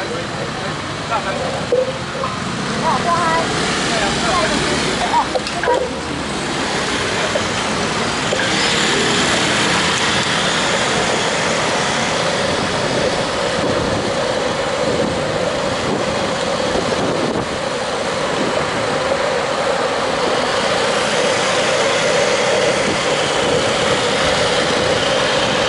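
Scooter engines hum close by in traffic.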